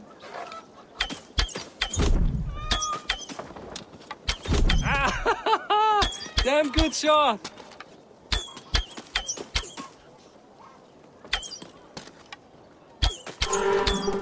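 Arrows thud into wooden targets one after another.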